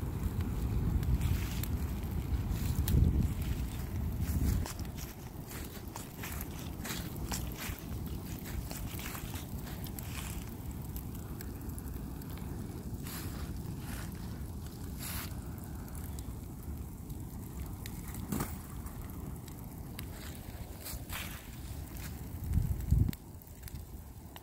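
Burning wood crackles and pops.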